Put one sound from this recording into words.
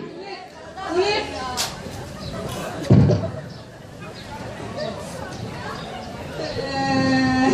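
A man speaks, heard through loudspeakers in an open space.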